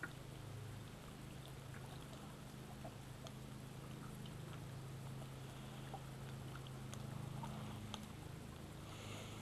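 Water laps softly against the side of a small boat.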